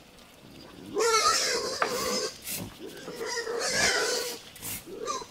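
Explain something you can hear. Pigs grunt and squeal nearby.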